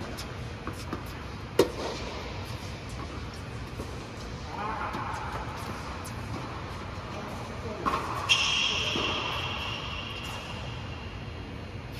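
Tennis shoes squeak on the court.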